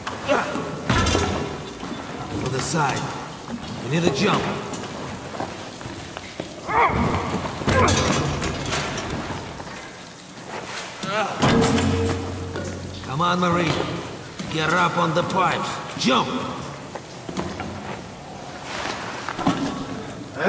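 Hands grip and clank on metal pipes and rungs while climbing.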